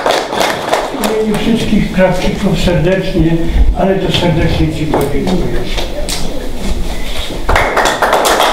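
A man speaks to an audience.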